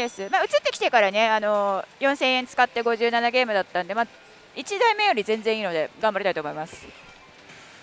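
A young woman talks animatedly into a headset microphone, close by.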